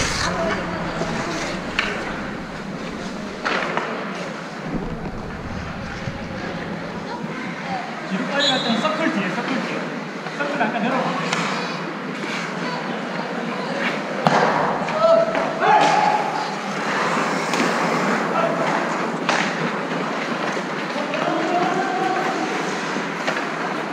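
Ice skates scrape and hiss on the ice.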